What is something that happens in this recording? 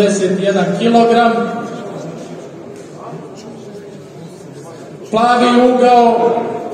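A man announces loudly through a loudspeaker, echoing in a large hall.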